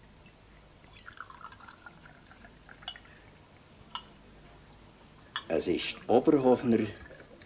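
Liquid glugs as it is poured from a bottle into a glass.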